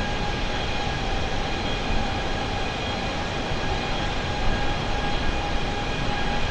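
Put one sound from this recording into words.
Jet engines roar with a steady, even whine.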